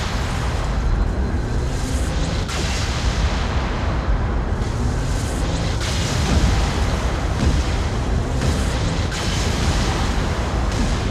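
A heavy machine gun fires in rapid, continuous bursts.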